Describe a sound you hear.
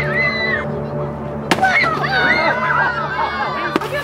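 A stick whacks a piñata.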